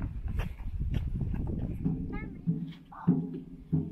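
A small child's footsteps clang on metal stairs.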